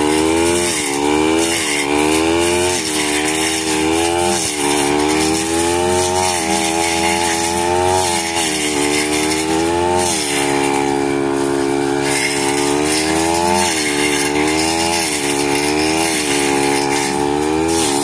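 A brush cutter line whips through tall grass.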